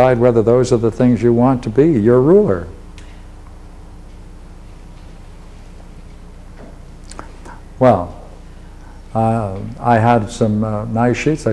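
An elderly man lectures calmly and expressively, with pauses between phrases.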